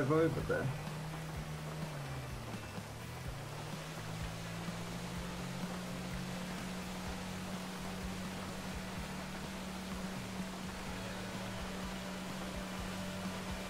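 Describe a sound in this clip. Water splashes and rushes against a speeding boat's hull.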